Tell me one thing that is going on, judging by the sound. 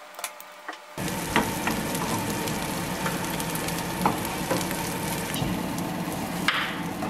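Patties sizzle and crackle as they fry in a pan.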